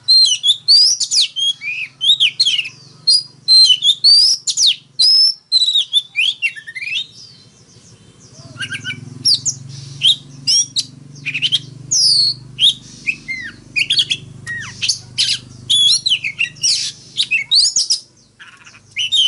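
A songbird sings loud, varied whistling phrases close by.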